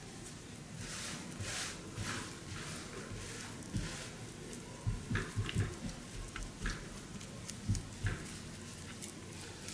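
A rabbit munches and crunches on a leafy stalk up close.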